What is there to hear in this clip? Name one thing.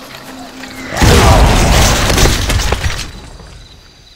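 A fiery explosion roars loudly.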